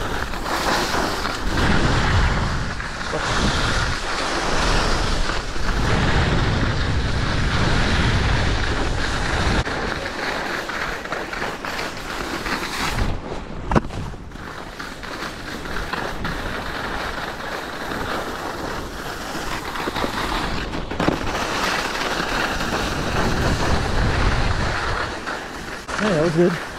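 A snowboard scrapes and hisses over packed snow.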